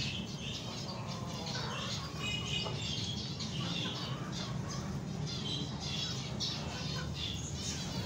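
Small finches splash in a shallow tray of water.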